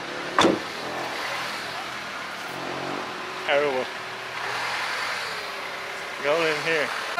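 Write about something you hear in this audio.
Vehicles pass by on a street.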